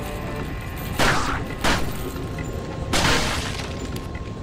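A pistol fires several loud shots that echo.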